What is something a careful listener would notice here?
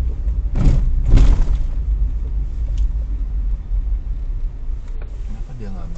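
A car engine rumbles low and steady from inside a moving vehicle.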